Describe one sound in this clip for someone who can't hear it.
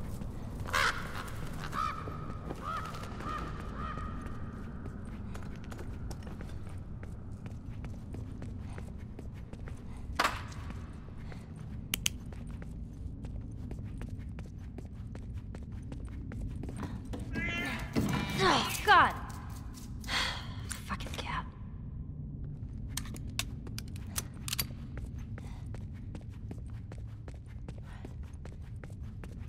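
Footsteps crunch and tap along the ground.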